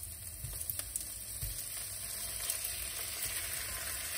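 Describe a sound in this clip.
Raw chicken pieces drop into a sizzling pan.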